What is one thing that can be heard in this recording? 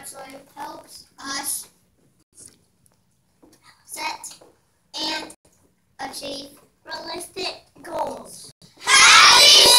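A young child speaks close by in short phrases.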